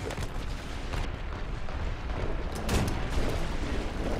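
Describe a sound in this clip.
A tank cannon fires with a loud bang.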